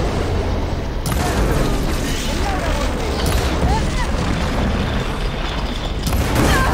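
Electric energy crackles and bursts.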